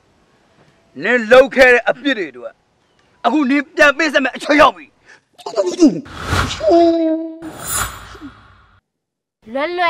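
A young man shouts angrily, close by.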